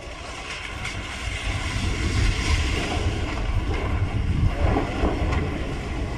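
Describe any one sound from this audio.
A building collapses with a deep, rolling crash of falling concrete.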